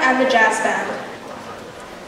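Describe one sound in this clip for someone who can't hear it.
A young woman speaks into a microphone in a large hall.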